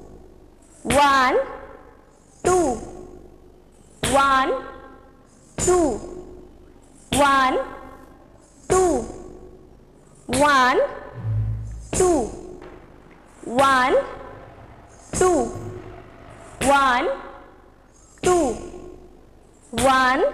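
A young woman calls out short syllables in a steady rhythm, close by.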